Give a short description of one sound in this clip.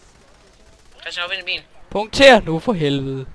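A gun fires several shots in quick succession.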